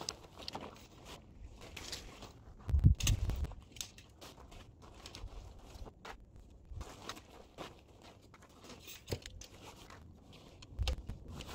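A tent's fabric rustles and crinkles as it is handled.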